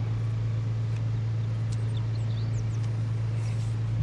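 Playing cards slap softly onto a wooden table.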